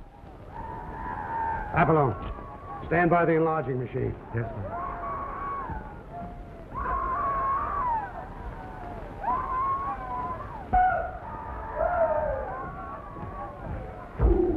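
A man speaks with feeling, heard through an old, hissy recording.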